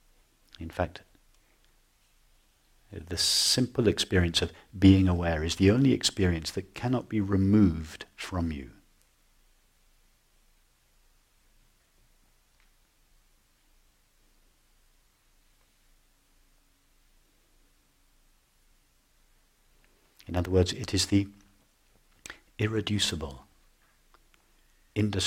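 A middle-aged man speaks calmly and thoughtfully, close to a microphone, with long pauses.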